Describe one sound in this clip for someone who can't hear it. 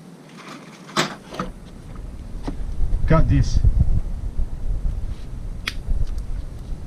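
Metal gear parts clink as they are handled.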